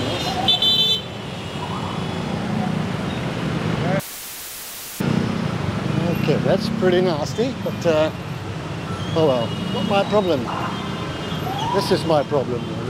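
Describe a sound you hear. Many motor scooter engines idle and creep along in heavy traffic outdoors.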